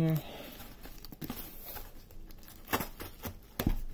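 Scissors scrape and cut through packing tape on a cardboard box.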